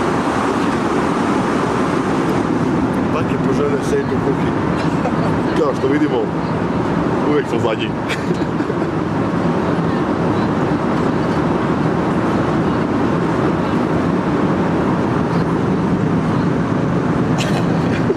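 A steady jet engine roar fills the cabin.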